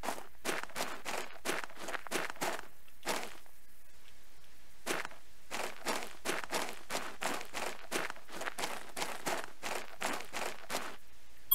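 Footsteps crunch steadily on loose gravel, pausing briefly.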